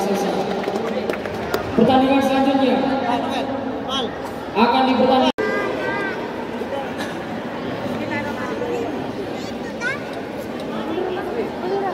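A crowd of young people chatters and shouts nearby in a large echoing hall.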